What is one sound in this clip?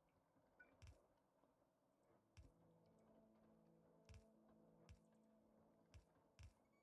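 Machines thud into place several times.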